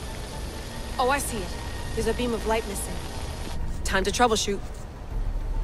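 A young woman speaks calmly and briefly.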